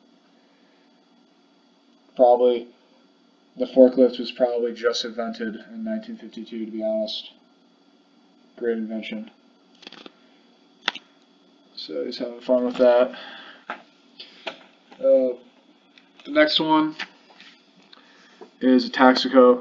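Paper pages rustle as a booklet is handled.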